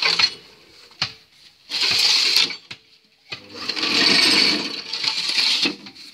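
Concrete mix scrapes and rustles as it is scooped by hand in a metal box.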